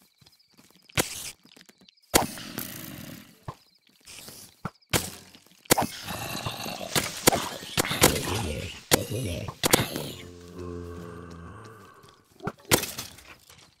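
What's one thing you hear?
A sword strikes again and again.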